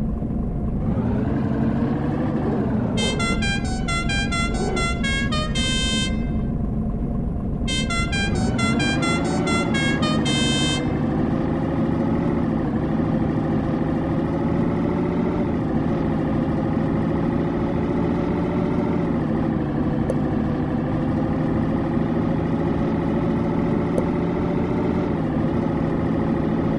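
A truck engine drones steadily, its pitch rising and falling as it changes speed.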